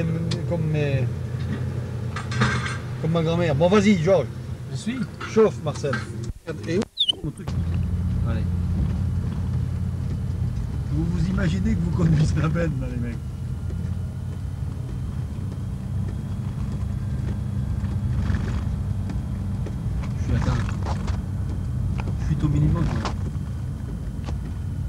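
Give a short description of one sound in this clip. A heavy vehicle engine rumbles steadily close by.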